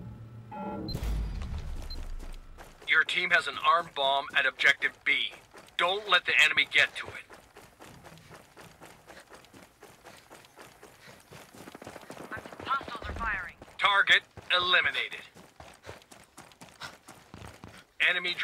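Boots crunch on snow and gravel as a soldier runs.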